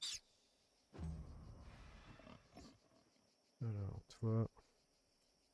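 A bear growls and roars.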